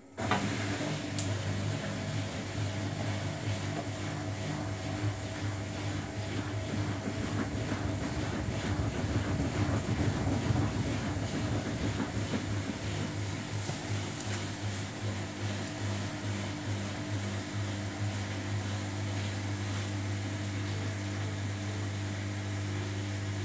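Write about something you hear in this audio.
Water sloshes inside a front-loading washing machine's drum.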